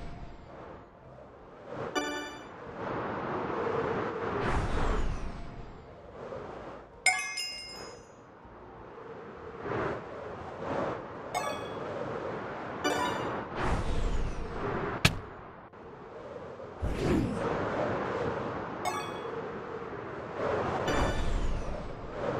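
Wind rushes past in rising and falling swells.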